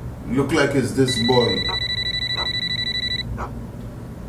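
A phone beeps with a steady high tone.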